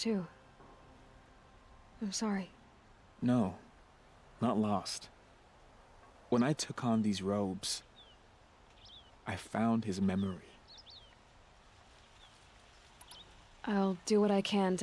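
A man speaks calmly through a microphone, in short bursts.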